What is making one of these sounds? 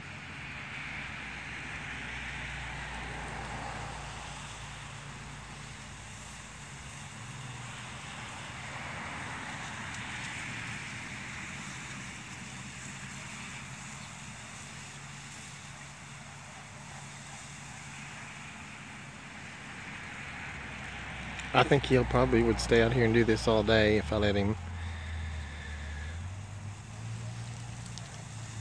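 A water sprinkler hisses as its spray sweeps back and forth.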